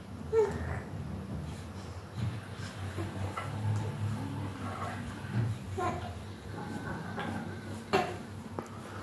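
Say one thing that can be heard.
A hanging toy rattles as a baby bats at it.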